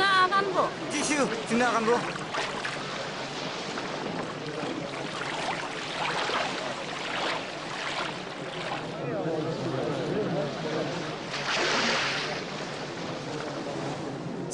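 Feet splash in shallow water at a shore.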